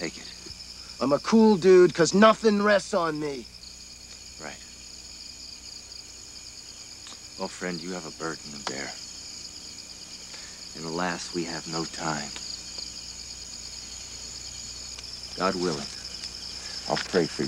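Men talk in low, tense voices close by.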